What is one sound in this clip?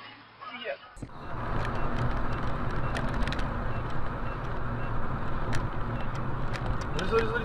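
Road noise rumbles from inside a moving car on asphalt.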